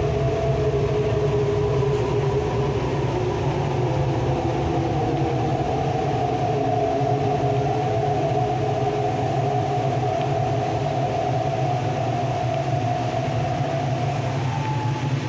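Traction motors of an electric train whine.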